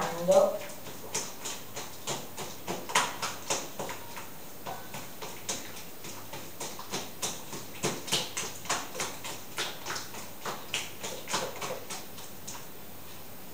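A fork beats eggs in a bowl with quick clicks.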